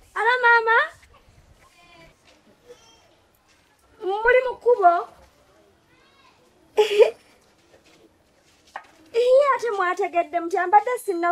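A young woman talks on a phone with animation, close by.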